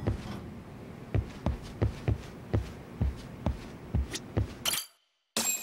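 Footsteps tread at an even pace on a wooden floor indoors.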